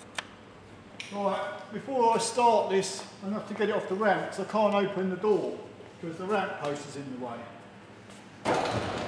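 A man talks calmly and clearly, close by.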